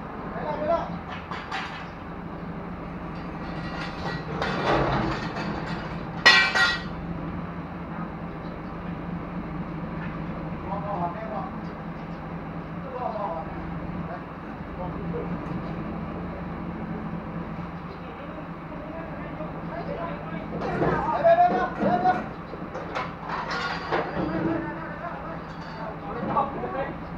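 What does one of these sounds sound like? A truck-mounted crane's engine hums steadily.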